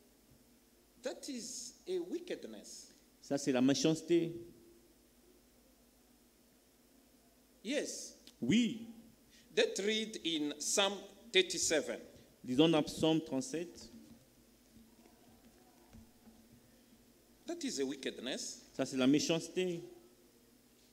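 A man speaks calmly into a microphone in an echoing room, pausing between phrases.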